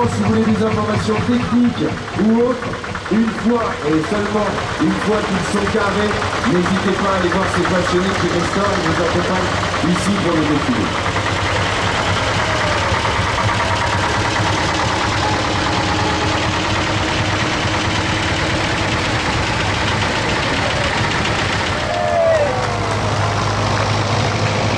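Old tractor engines chug steadily as they drive past.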